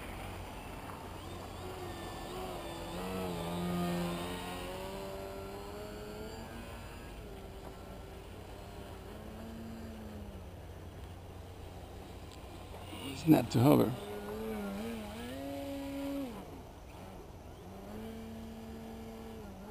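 A model airplane's engine buzzes overhead, rising and falling in pitch as it climbs and swoops.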